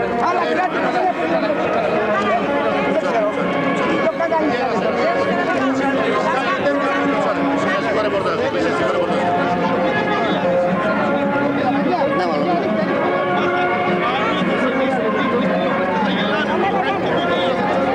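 A crowd of men and women talk over one another outdoors, close by.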